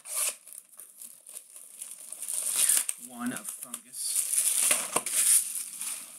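Plastic wrap crinkles as it is torn off a box.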